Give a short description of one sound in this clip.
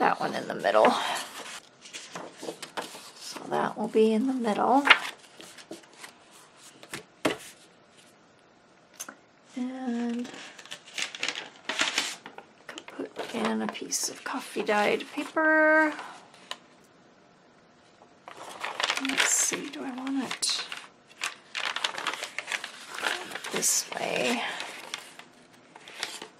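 Paper rustles and crinkles as it is handled and folded.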